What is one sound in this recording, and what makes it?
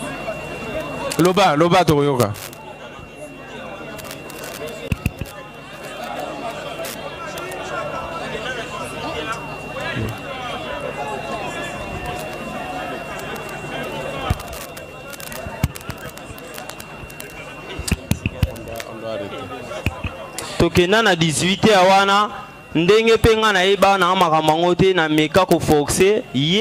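A young man speaks loudly into a microphone over a loudspeaker.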